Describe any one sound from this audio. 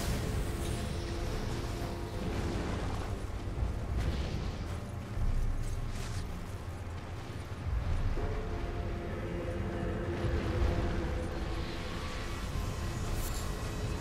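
Wind howls steadily outdoors.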